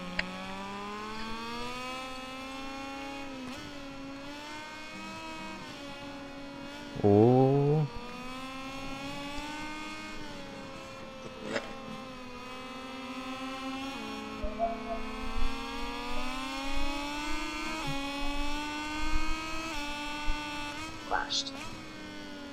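A racing motorcycle engine whines steadily, rising and falling in pitch as it shifts gears.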